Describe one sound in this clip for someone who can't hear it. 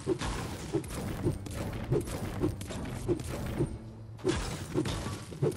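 A pickaxe strikes stone in a steady rhythm of dull thuds.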